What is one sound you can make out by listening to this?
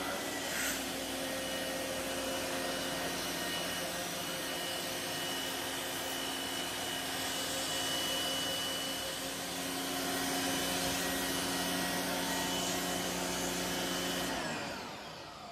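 A pressure washer sprays water onto a hard floor with a loud, steady hiss and drone.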